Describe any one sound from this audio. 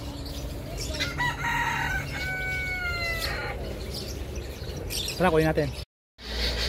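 Birds chirp and call nearby.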